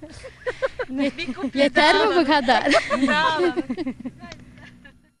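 Women laugh and chat close to a microphone.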